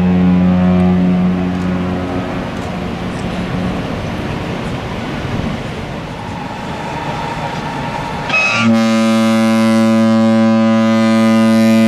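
A large ship's horn blows a deep, steady blast.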